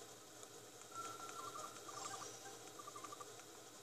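A handheld game console beeps softly as text scrolls.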